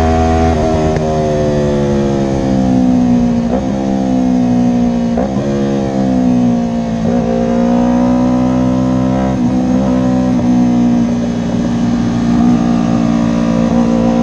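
Wind buffets against a rider's helmet.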